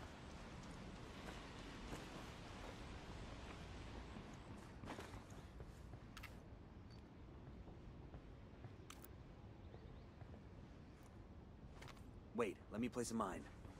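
Footsteps crunch on the ground and then thud on a wooden floor.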